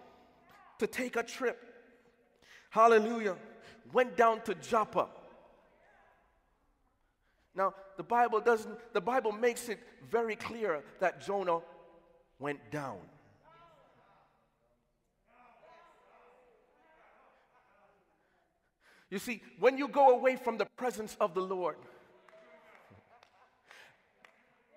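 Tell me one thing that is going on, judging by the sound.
A man preaches with animation into a microphone in a large echoing hall.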